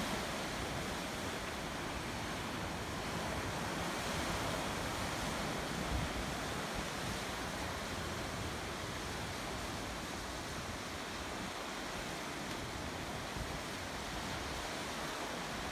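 Waves wash and crash against rocks below.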